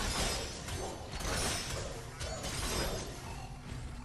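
Rapid blasts and impacts of gunfire crackle loudly.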